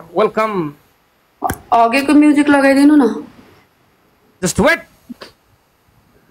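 A young woman speaks in short, drawn-out phrases over an online call.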